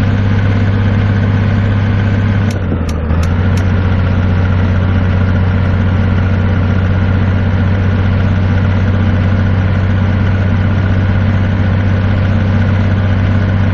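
A truck engine drones steadily as the truck drives along.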